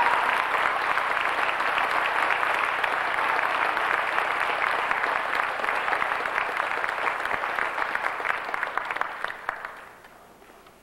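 An audience claps and applauds loudly in a large hall, then the clapping dies down.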